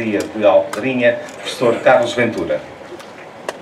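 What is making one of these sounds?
A man speaks into a microphone over loudspeakers outdoors.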